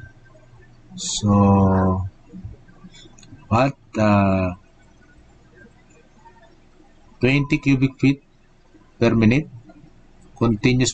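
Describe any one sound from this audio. A man speaks calmly and slowly into a microphone, as if on an online call.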